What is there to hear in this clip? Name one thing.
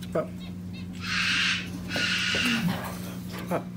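A parrot squawks loudly.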